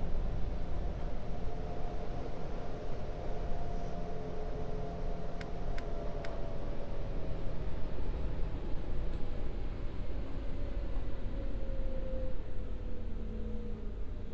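A train's motor hums with a slowly falling whine.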